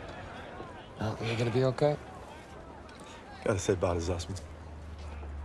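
A young man speaks cheerfully and close by.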